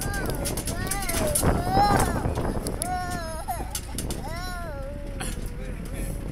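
A toddler babbles and squeals happily close by.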